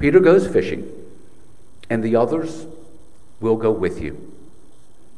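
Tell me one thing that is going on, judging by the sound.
An older man speaks calmly into a microphone, in short phrases with pauses.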